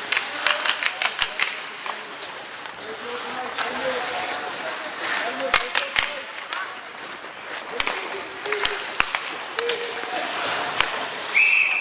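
Hockey sticks clack against a puck on ice.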